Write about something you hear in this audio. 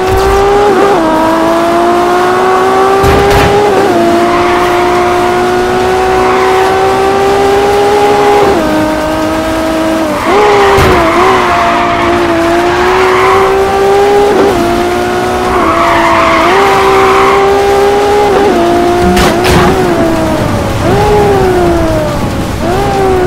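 A sports car engine roars loudly, its pitch rising and dropping as it shifts gears.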